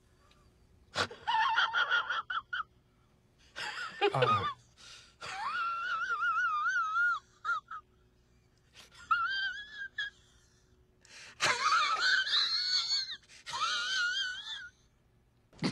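A man speaks with animation in a wavering, playful voice.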